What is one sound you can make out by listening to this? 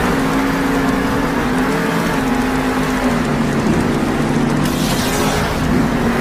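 Several monster truck engines roar loudly and steadily.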